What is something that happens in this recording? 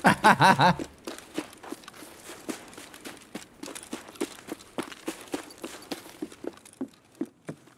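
Footsteps crunch steadily on snow.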